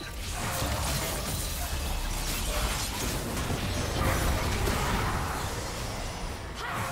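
Magic spell effects whoosh and crackle in a video game battle.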